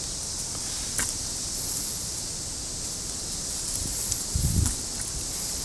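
Pruning shears snip through thin branches.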